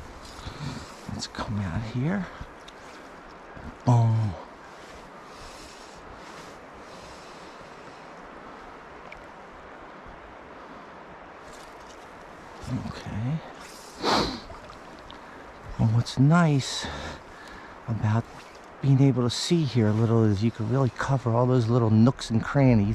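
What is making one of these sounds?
A shallow river ripples and flows steadily.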